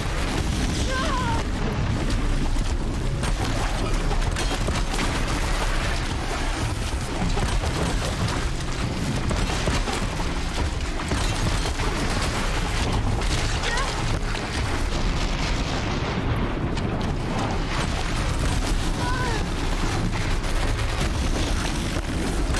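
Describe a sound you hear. Explosions boom and crackle in bursts.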